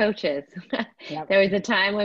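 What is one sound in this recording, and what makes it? A woman laughs over an online call.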